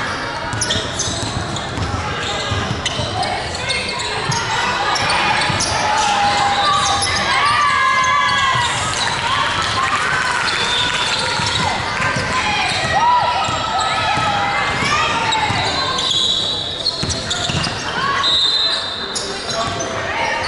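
Basketball shoes squeak sharply on a hard court in a large echoing hall.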